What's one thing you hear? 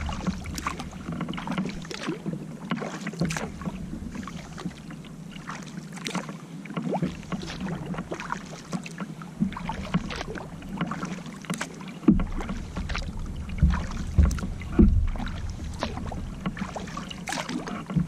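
A paddle splashes and dips rhythmically into water.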